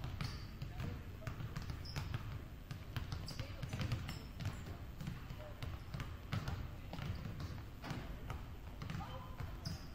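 Basketballs bounce on a hard court in a large echoing gym.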